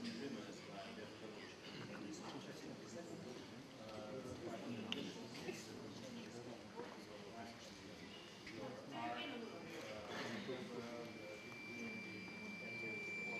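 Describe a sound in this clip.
An audience murmurs quietly.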